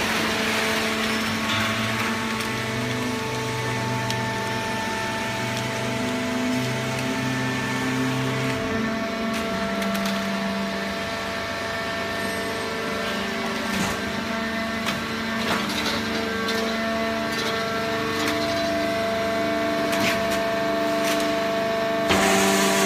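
A conveyor belt rattles as it runs.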